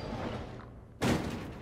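A box thuds onto a wooden floor.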